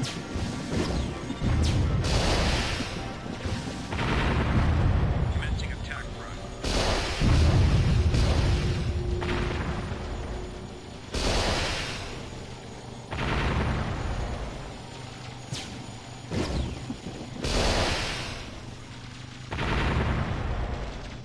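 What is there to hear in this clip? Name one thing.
Explosions burst and rumble.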